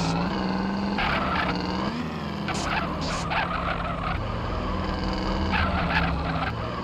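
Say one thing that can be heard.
Car tyres screech while skidding around a corner.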